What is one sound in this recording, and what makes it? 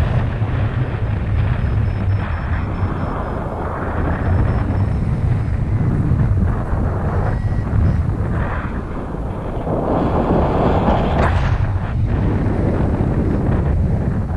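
Strong wind rushes and buffets past close by, outdoors high in the air.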